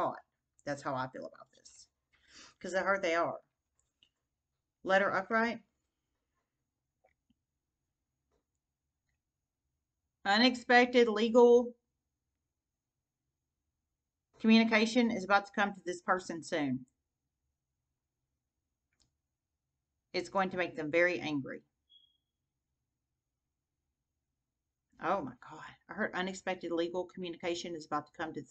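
A woman talks calmly and close to a microphone, in short bursts with pauses.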